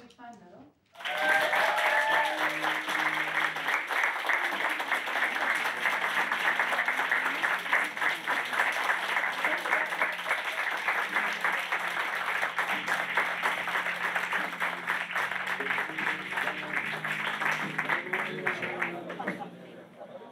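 A crowd applauds and cheers steadily.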